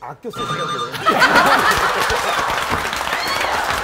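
An audience laughs and claps.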